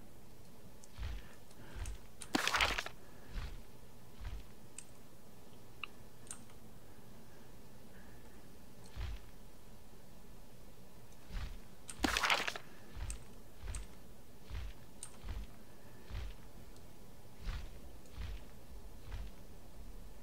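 Large wings flap with soft, regular low thumps.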